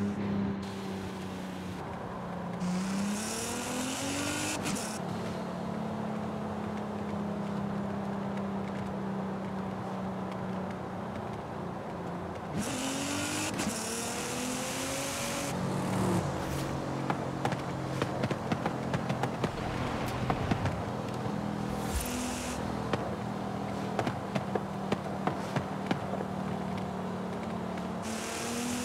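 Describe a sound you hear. Tyres crunch over a rough road.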